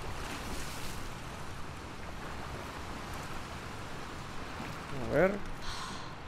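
Footsteps wade and splash through shallow water.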